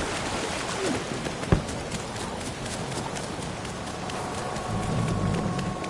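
Footsteps thud on grass and pavement.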